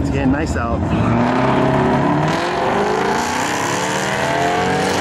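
Race car engines roar loudly as the cars launch and speed away, rising in pitch.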